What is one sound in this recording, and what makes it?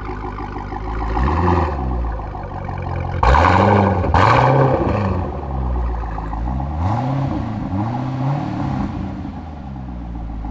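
A sports car engine revs sharply several times and drops back.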